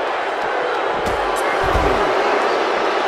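A body slams heavily onto a mat with a dull thud.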